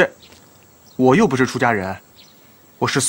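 A man answers calmly.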